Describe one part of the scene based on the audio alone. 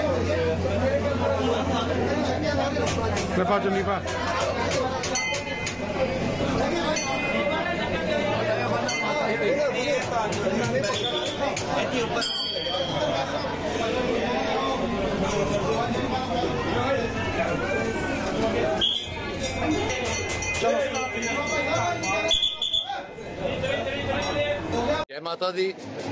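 A crowd of men and women chatters and chants close by.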